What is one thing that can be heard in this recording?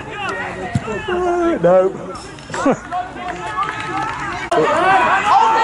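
Young men shout and call out across an open pitch.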